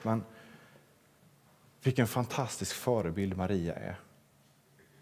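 A young man speaks calmly into a microphone in a large hall.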